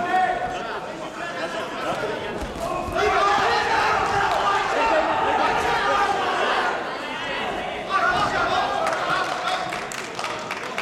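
Spectators shout and cheer in a large echoing hall.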